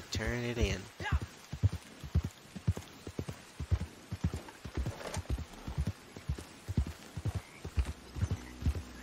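A horse's hooves thud steadily on soft ground at a trot.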